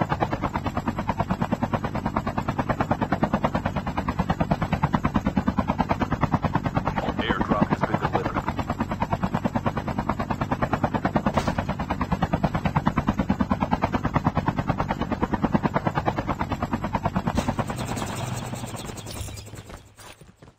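A helicopter's rotor thumps in a fast, steady beat, then fades away.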